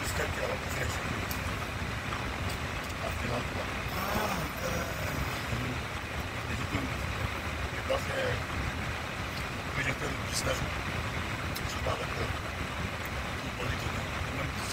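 A middle-aged man talks close up with animation.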